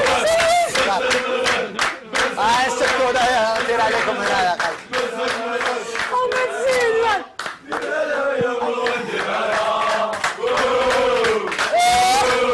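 An audience cheers and shouts with excitement.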